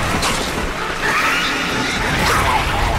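A ghostly blast whooshes and crackles.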